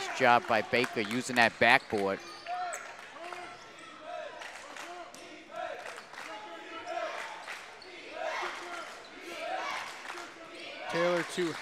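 A crowd murmurs in a large echoing gym.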